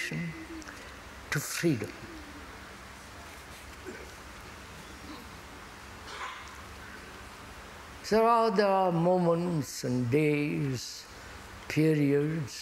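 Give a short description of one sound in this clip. An elderly man speaks calmly through a lapel microphone, with long pauses.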